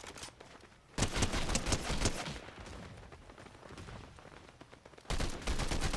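Rapid bursts of gunfire from an assault rifle ring out.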